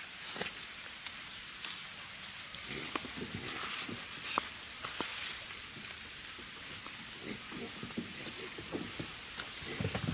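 Leaves rustle as a vine is lifted and handled.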